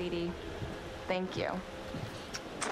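A young woman speaks softly nearby.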